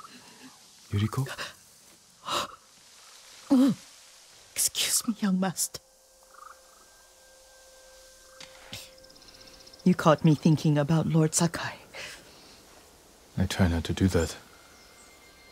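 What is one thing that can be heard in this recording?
An elderly woman speaks calmly and close by.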